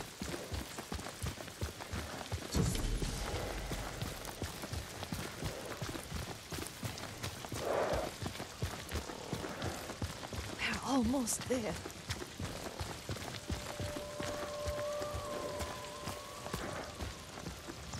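Horses' hooves clop steadily on a dirt path.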